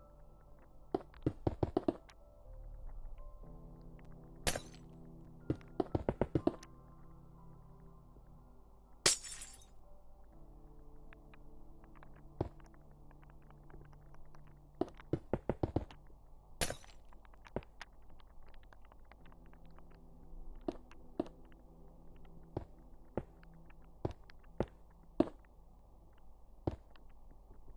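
Blocks knock and thud as they are placed, in quick bursts.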